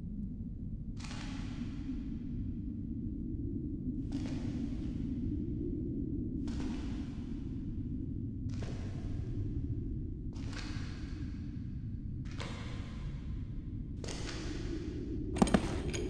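Slow footsteps thud one after another.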